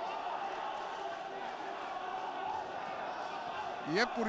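Boxing gloves thud against a boxer's body and head.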